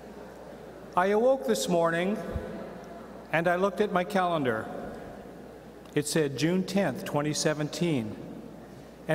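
A middle-aged man speaks with expression into a microphone in a large hall, with pauses between phrases.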